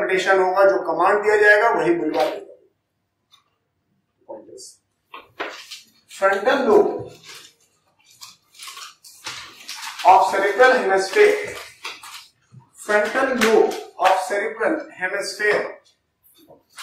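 A man lectures calmly into a clip-on microphone.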